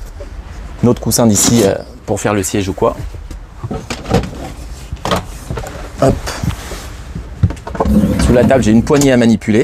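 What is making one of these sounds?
Cushions and wooden panels thump and knock as they are moved.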